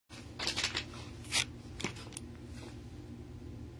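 A plastic pouch crinkles in a hand.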